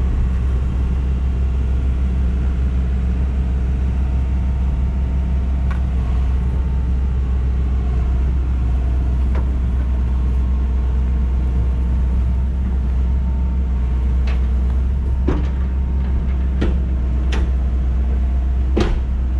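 Metal creaks and clanks as a heavy box is dragged onto a trailer.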